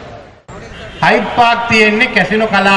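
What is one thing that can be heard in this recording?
A middle-aged man speaks loudly into microphones.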